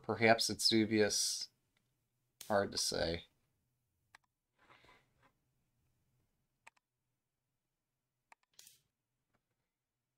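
A game piece clicks down onto a wooden board.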